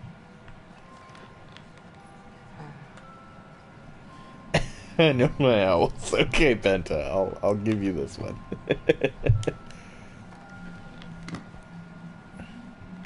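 A music box plays a tinkling tune.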